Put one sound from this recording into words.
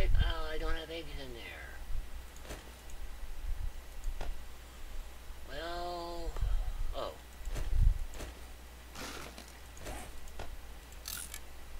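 Short clicks sound as items are moved about in a game menu.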